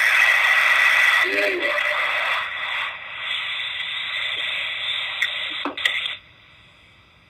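A singing bowl rings with a steady, shimmering tone and then stops.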